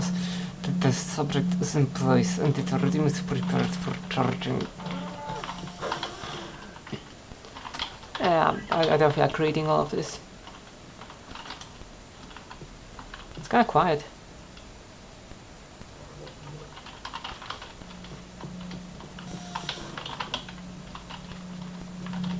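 Keys clack on a computer keyboard.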